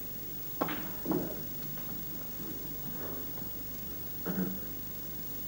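Snooker balls knock together with sharp clicks.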